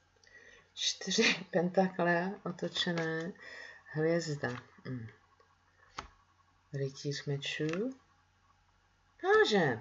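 Playing cards are laid down on a table with soft taps.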